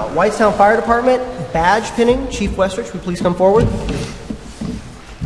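A man speaks calmly into a microphone in a large echoing hall.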